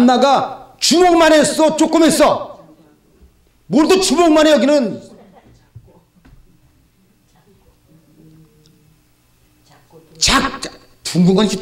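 A middle-aged man speaks loudly and with animation through a microphone in an echoing hall.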